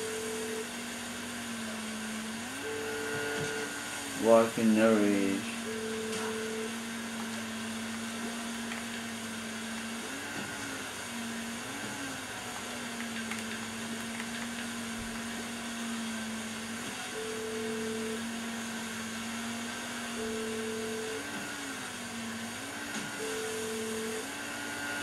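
A motorboat engine drones steadily and rises in pitch now and then.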